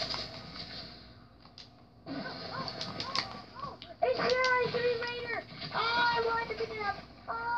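Gunfire and game sounds play from a television speaker.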